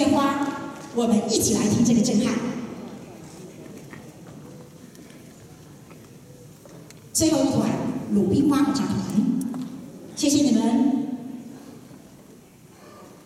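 A large choir sings in a big echoing hall, in swelling phrases with pauses between.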